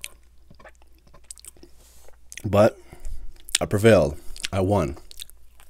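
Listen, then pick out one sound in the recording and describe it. A bun squishes softly as a man handles a sandwich.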